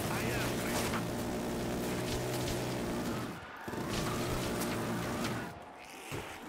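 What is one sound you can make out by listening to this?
A rapid-fire gun fires bursts of shots.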